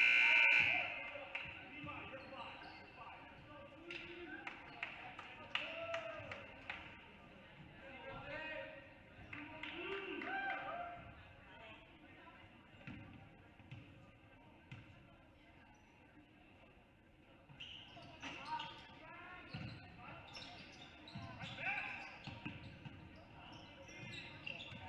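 A crowd chatters and calls out in a large echoing gym.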